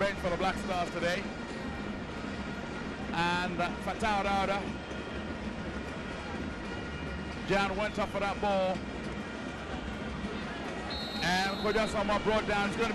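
A large crowd murmurs and roars in a stadium.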